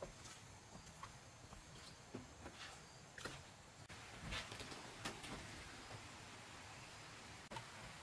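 Footsteps thud on wooden steps and floorboards.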